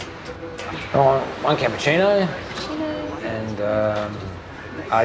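A middle-aged man speaks in a low, gruff voice.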